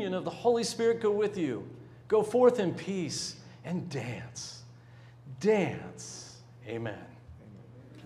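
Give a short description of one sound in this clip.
An older man speaks with animation through a microphone in a reverberant hall.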